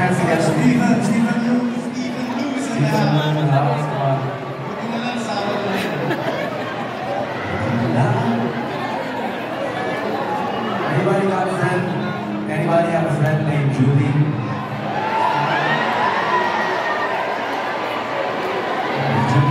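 A rock band plays loudly through large speakers in a big echoing hall.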